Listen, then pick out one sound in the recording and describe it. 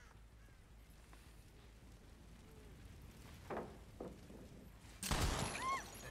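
A burst of fire erupts with a loud whoosh.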